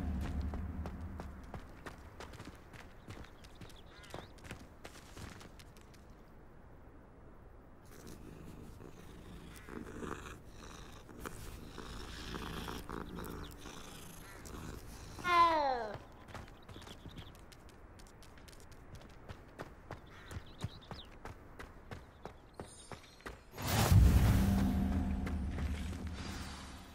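Footsteps tap on stone and grass.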